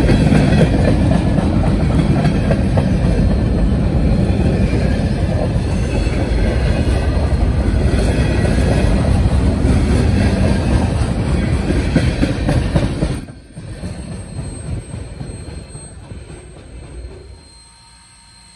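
A freight train rumbles past close by, its wheels clattering loudly on the rails.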